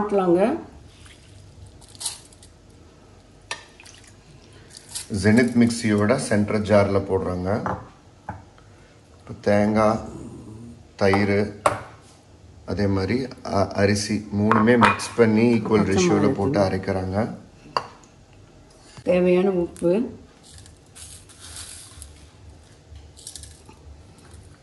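Hands scoop and squeeze soaked rice into a metal bowl.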